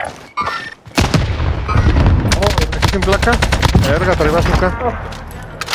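Rapid gunshots crack from a rifle.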